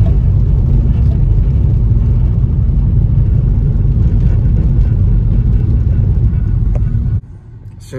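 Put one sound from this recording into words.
Tyres rumble loudly over brick paving from inside a car.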